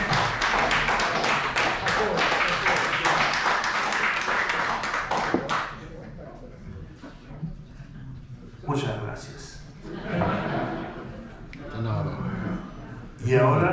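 An upright bass plays a walking line.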